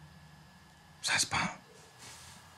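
A man speaks briefly and close by.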